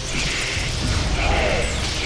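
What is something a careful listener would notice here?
A blast booms and rumbles.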